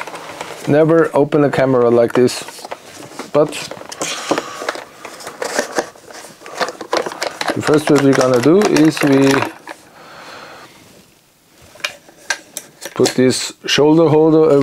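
Hard plastic parts click and rattle as they are handled.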